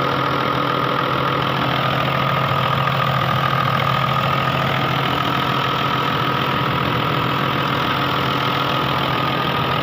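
A diesel engine idles close up.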